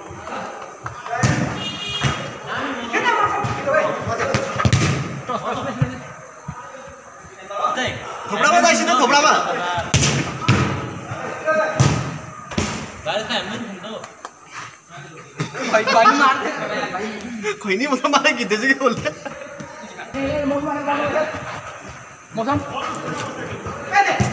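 Young men shout and call out to each other close by.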